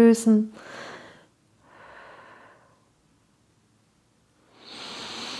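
A woman breathes in and out slowly and deeply.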